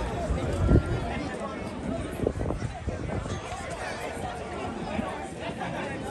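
A crowd of men and women murmurs and chatters nearby outdoors.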